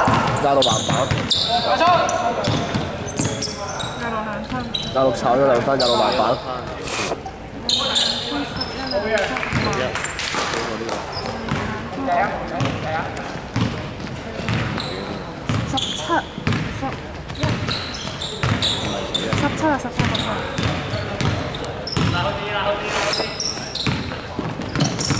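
A basketball bounces on a wooden court, echoing in a large hall.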